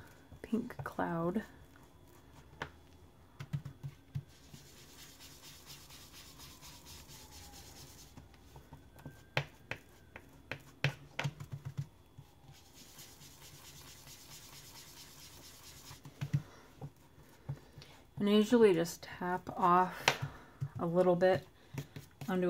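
A stamp taps lightly on an ink pad and on a table.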